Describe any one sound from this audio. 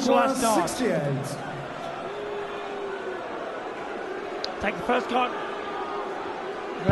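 A large crowd murmurs and whistles in a big echoing hall.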